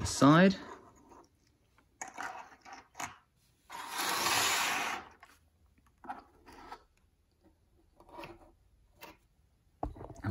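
Plastic figures tap and scrape on a hard table.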